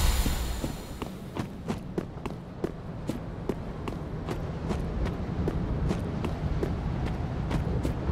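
Footsteps clatter over stone.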